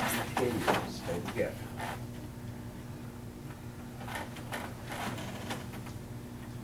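An older man calls out instructions to a class, heard from across a large room.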